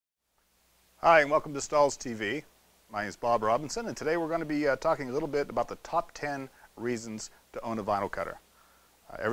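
A middle-aged man talks calmly and clearly into a microphone, close by.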